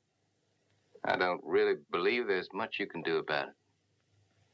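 A man speaks in a low, firm voice close by.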